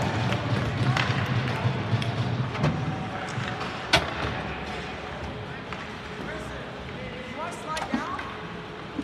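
Hockey sticks click against a puck and the ice.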